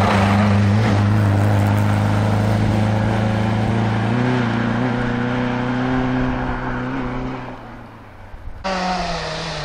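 A rally car engine roars loudly as it speeds past and fades away.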